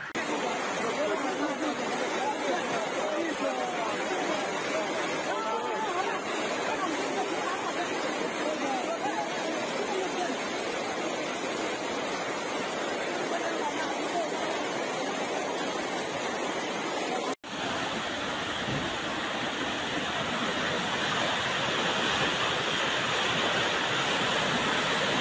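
Muddy floodwater rushes and roars loudly through a street.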